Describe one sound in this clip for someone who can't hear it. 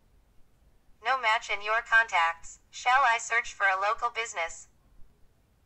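A synthesized voice speaks from a phone's small loudspeaker.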